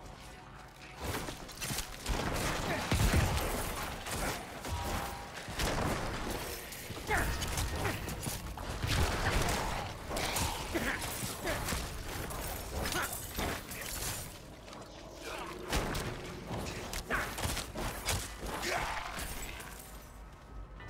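Blows and spells clash loudly in a fast fight.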